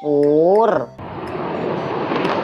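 A jet engine roars on a runway.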